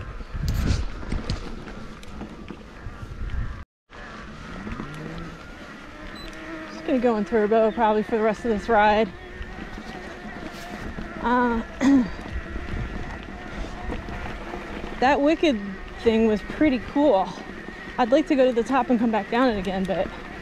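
Bicycle tyres roll and rumble over a grassy dirt trail.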